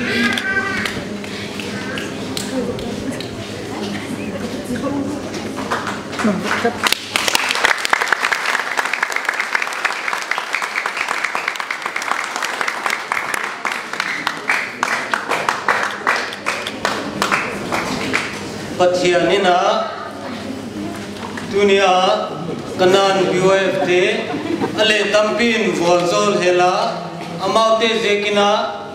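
A man speaks calmly into a microphone over a loudspeaker in an echoing hall.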